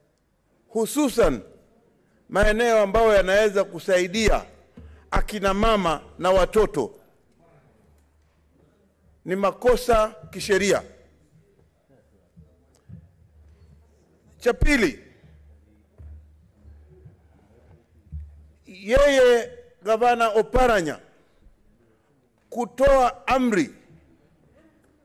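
A man speaks forcefully into a microphone, pausing between phrases.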